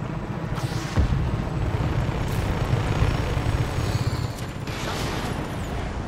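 A helicopter's rotor thumps and whirs overhead.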